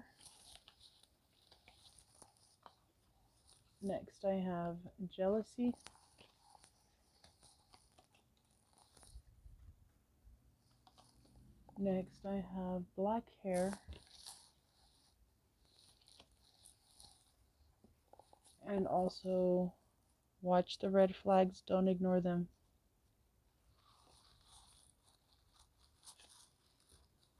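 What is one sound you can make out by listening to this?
Paper cards slide and tap softly on a wooden table.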